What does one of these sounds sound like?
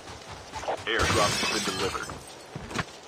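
A window pane shatters with a burst of breaking glass.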